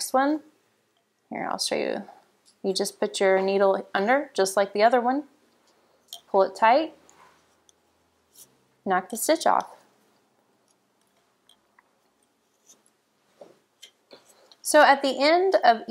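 Wooden knitting needles tap and click softly.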